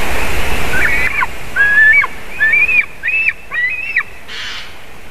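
A large bird gives a series of high, sharp yelping calls.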